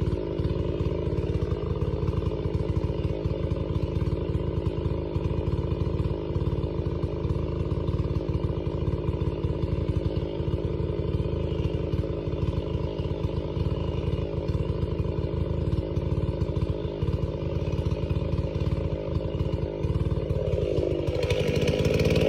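A large chainsaw runs at a steady low speed.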